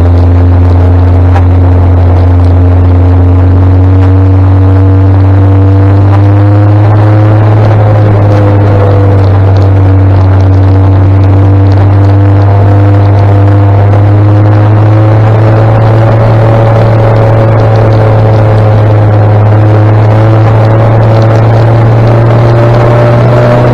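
A motorcycle engine hums steadily close by, its pitch slowly rising.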